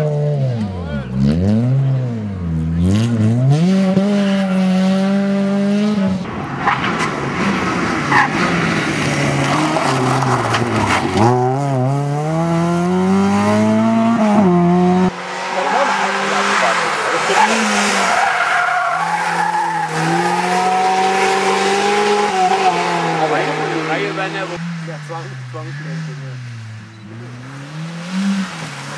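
Tyres crunch and skid on loose ground.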